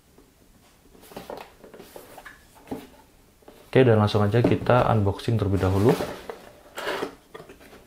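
A cardboard box rustles and taps softly as hands turn it over.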